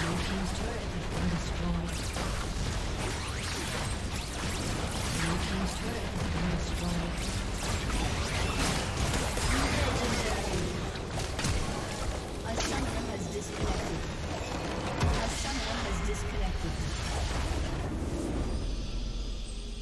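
Magic spells blast and weapons clash in a busy fantasy battle.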